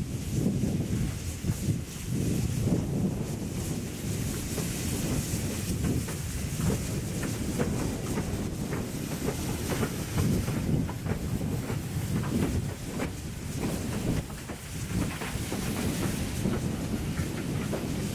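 Steam hisses from a locomotive.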